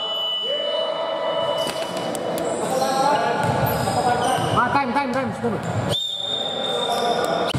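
Players' footsteps thud and patter across the court.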